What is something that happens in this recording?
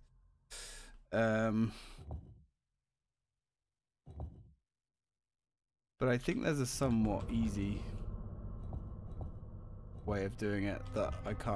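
Stone tiles slide and clunk into place.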